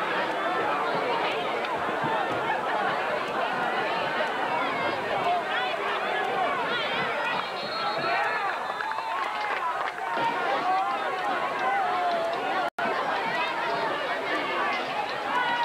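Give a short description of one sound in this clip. A large crowd of men and boys chatters and shouts outdoors.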